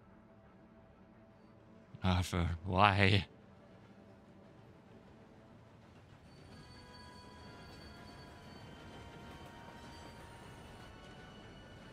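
A train rumbles as it approaches in the distance.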